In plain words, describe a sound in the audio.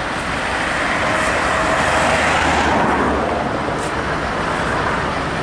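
Tyres roll steadily on a road as cars pass close by.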